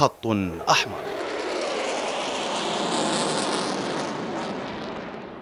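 Fighter jets roar loudly overhead.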